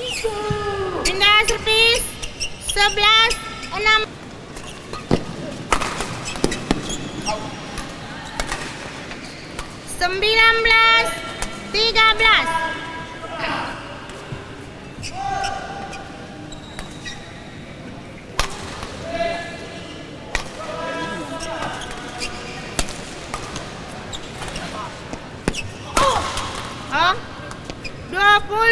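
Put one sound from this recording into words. Sports shoes squeak sharply on a court floor.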